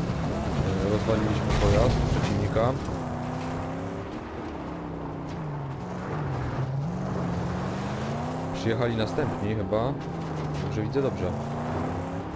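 A car engine roars, its pitch rising and falling.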